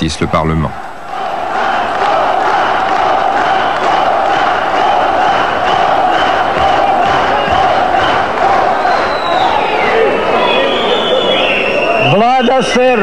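A large crowd chants loudly in a big echoing hall.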